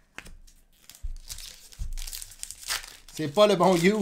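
A foil card wrapper crinkles and tears.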